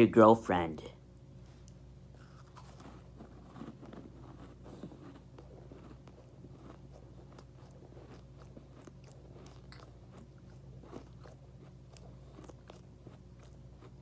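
A young man chews food with soft, wet mouth sounds, close up.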